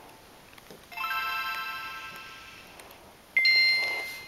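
A handheld game console plays a short, bright startup chime that fades away.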